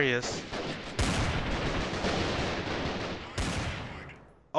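A pistol fires sharp shots that echo.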